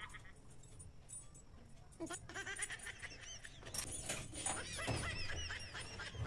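A key rattles in a metal cabinet lock.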